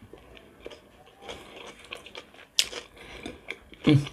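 A woman bites into crisp cucumber with a crunch.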